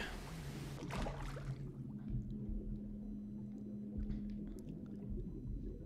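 Muffled water swirls in a low, steady underwater rumble.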